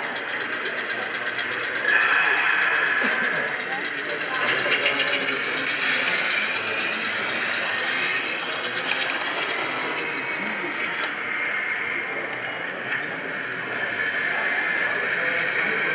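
A small model tram rattles and hums along its track.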